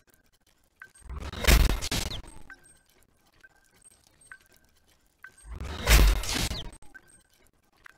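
A crafting machine whooshes in short loud bursts.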